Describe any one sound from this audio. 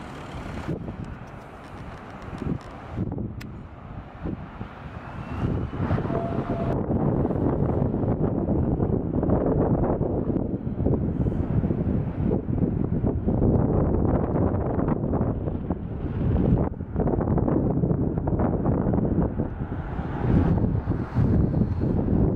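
Wind blows and buffets against the microphone outdoors.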